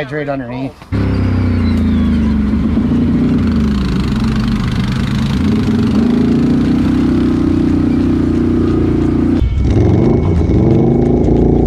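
An all-terrain vehicle engine rumbles steadily as it drives along a trail.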